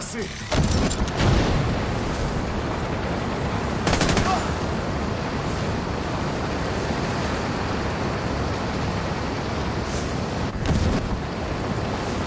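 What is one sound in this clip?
Flames roar steadily.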